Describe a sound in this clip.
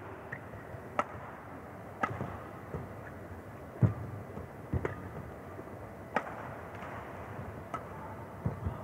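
Rackets smack a shuttlecock back and forth in a sharp rally.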